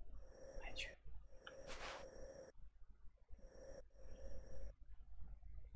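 Soft electronic menu tones hum and chime.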